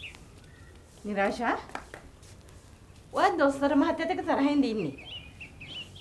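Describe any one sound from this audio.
A middle-aged woman speaks with animation nearby.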